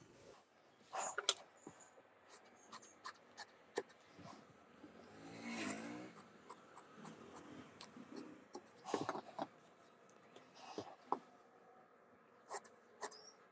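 Scissors snip through cloth.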